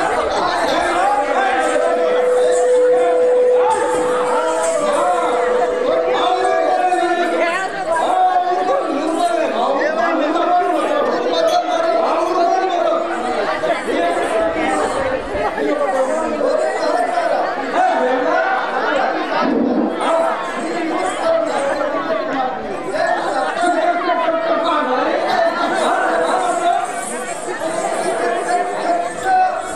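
A man sings loudly in a dramatic way through a loudspeaker.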